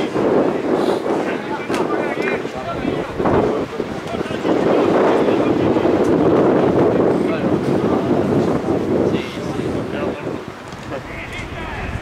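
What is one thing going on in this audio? A crowd of spectators chatters and shouts from stands outdoors.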